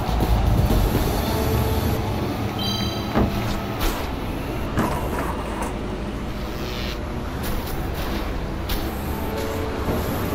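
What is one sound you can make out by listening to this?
A toy kart engine hums steadily.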